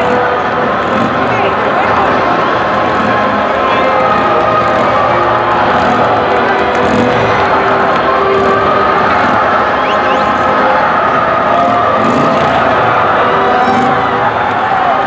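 A marching band plays brass music nearby.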